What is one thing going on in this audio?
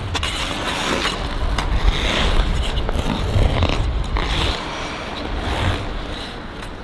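Ice skate blades scrape and swish across ice in a large echoing rink.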